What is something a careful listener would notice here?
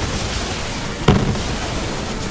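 A large explosion booms up close.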